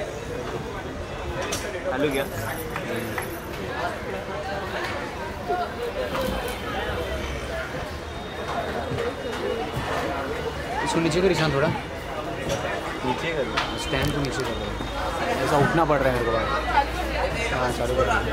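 Young spectators chatter and call out close by, outdoors.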